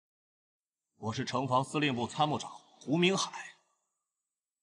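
A young man speaks firmly and calmly, close by.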